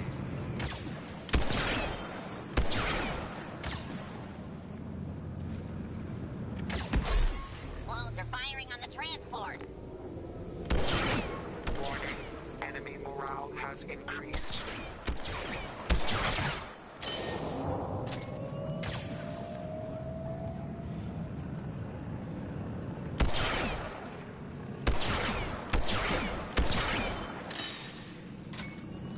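Distant gunfire and explosions rumble in the background.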